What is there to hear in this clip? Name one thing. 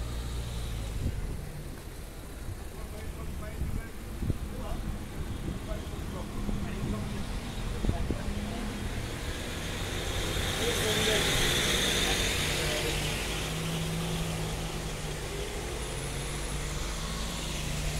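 Cars drive past along a town street.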